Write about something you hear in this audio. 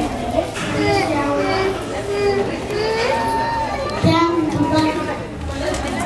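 A young girl speaks into a microphone, heard through a loudspeaker.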